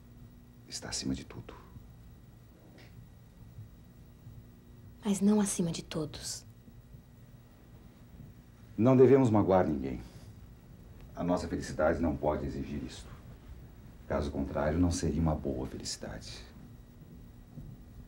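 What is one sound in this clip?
A man speaks firmly and with feeling, close by.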